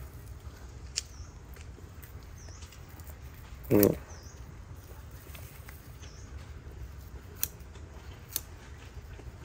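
Small shears snip through plant roots with sharp clicks.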